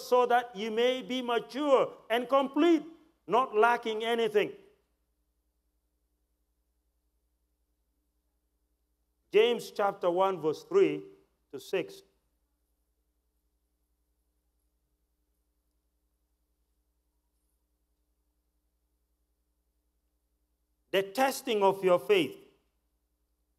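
A man speaks calmly through a microphone, in bursts with long pauses.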